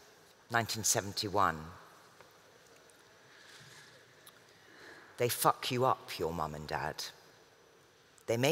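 A woman reads aloud slowly and expressively into a microphone, with pauses.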